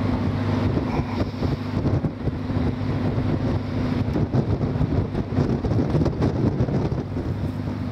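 A small boat's engine chugs steadily across the water.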